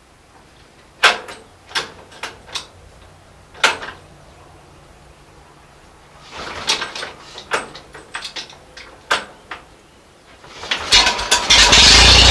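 A tractor engine is cranked by hand, clanking and knocking.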